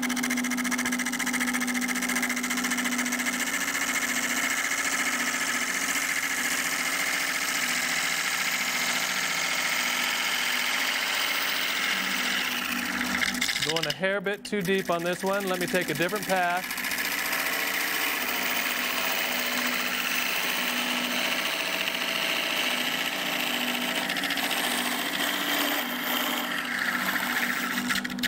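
A chisel scrapes and cuts spinning wood, shavings hissing.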